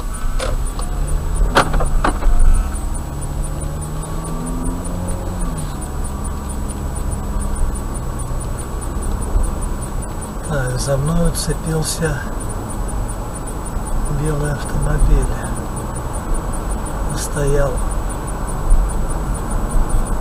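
A car engine hums as the car speeds up.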